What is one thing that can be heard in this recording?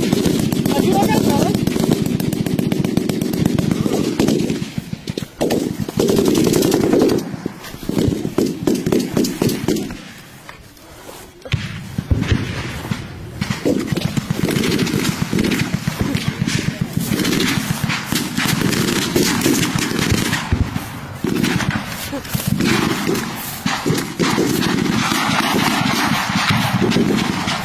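Leaves and grass rustle and scrape up close as they brush past.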